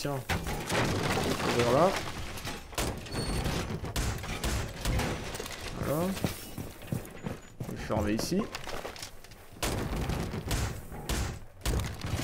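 Wooden boards knock and clatter as a barricade is put up.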